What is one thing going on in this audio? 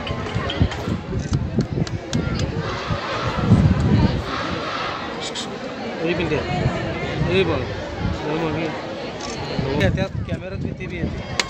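A crowd of men and women murmurs and chatters nearby outdoors.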